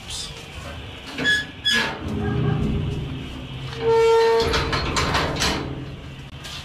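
A metal gate rattles and clanks as it is opened.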